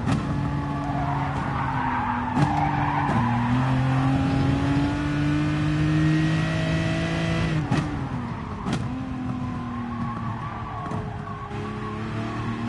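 A racing car engine roars and revs up through the gears, then drops in pitch as the car brakes.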